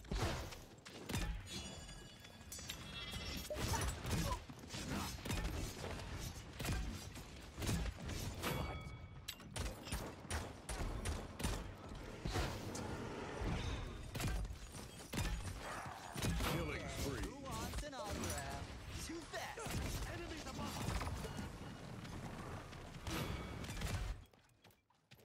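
Energy weapons fire in rapid bursts.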